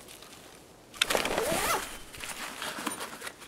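Gear rustles and clatters as a bag is searched.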